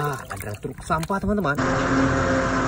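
Water splashes as a toy truck is dipped in it.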